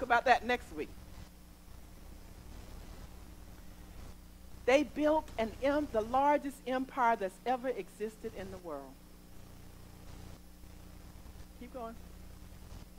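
A woman speaks with expression through a microphone.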